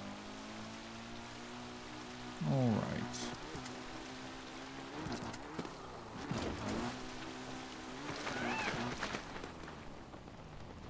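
A motorbike engine hums and revs up and down.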